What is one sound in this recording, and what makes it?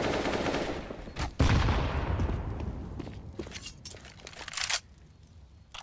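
Rifle shots crack and echo in quick bursts.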